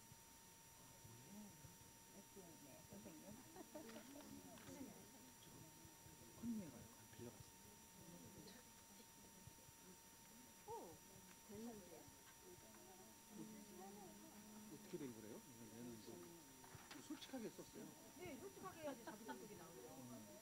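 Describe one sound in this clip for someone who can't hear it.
Adult women and men chatter quietly across a room.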